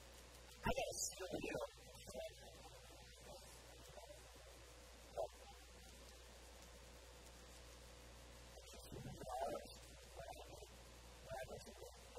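A man speaks with animation into a clip-on microphone, in short bursts with pauses.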